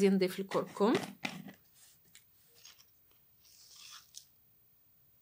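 A screw lid twists open on a glass jar.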